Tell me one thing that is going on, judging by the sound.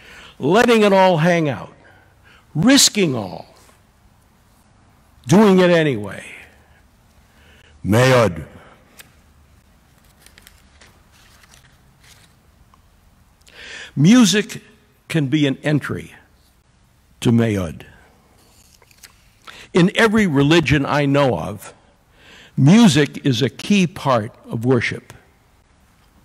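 An elderly man speaks slowly and deliberately in a room with a slight echo, with long pauses between phrases.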